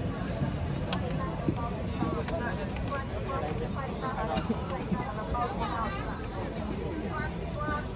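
Young women chatter close by.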